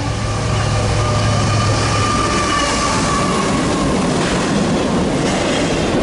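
Freight cars clatter and squeal past on the rails.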